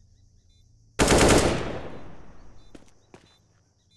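A rifle fires a quick burst of shots that echo away.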